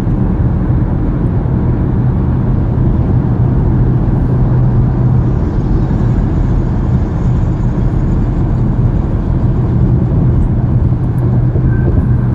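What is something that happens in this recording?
A car's engine hums and its tyres roar steadily on a highway, heard from inside the car.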